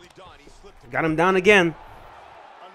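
A young man shouts out loudly.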